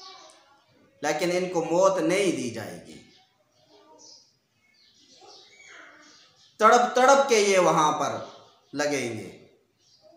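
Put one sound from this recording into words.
A man chants in a melodic voice, close to a microphone.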